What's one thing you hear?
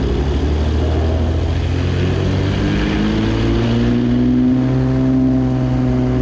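A propeller engine revs up, rising in pitch.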